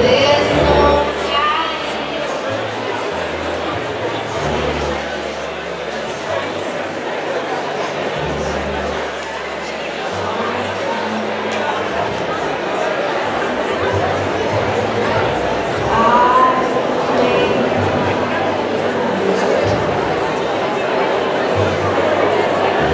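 A big band plays a lively tune in a large echoing hall.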